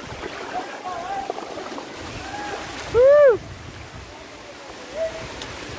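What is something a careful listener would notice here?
A shallow stream trickles over rocks.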